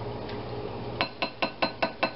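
A metal spoon clinks against a glass bowl as it stirs.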